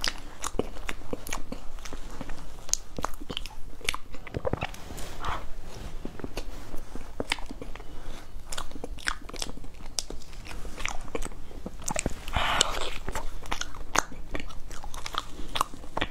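A spoon scrapes and taps against a cake.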